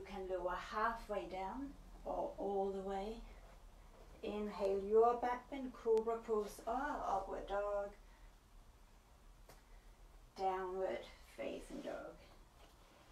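A young woman speaks calmly and evenly, giving instructions close by.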